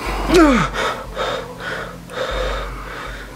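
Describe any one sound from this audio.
A man speaks in a shaken, breathless voice close by.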